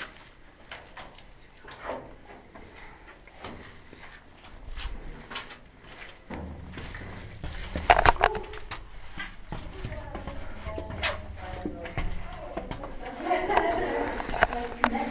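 Footsteps scuff and shuffle on stone in a narrow, echoing passage.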